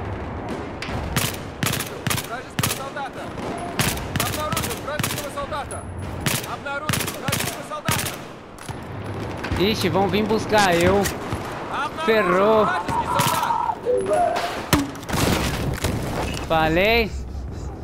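A rifle fires bursts of rapid shots that echo in a tiled tunnel.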